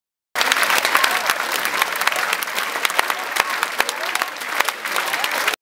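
A large crowd applauds steadily in a hall.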